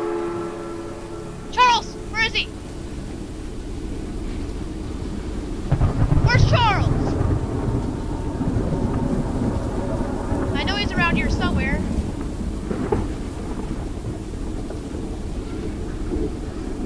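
A rail handcar rumbles steadily along the tracks.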